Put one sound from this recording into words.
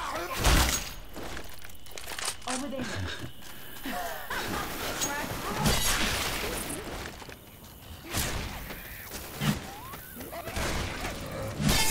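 A blade swishes and strikes in quick swings.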